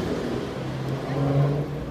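A car drives off along the street.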